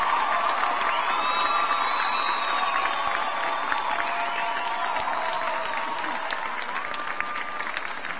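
A large crowd applauds loudly in a big echoing hall.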